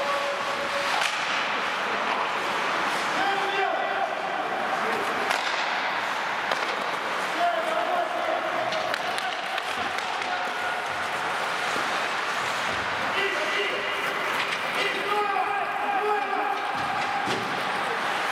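Hockey sticks clack against a puck and the ice.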